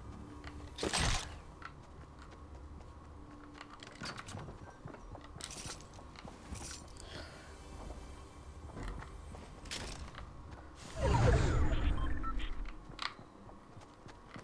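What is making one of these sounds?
Wooden planks clatter as walls and ramps are built.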